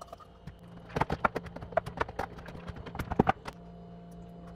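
A utensil clinks against a plastic container.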